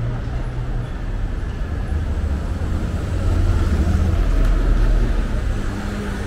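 Motor scooters ride past.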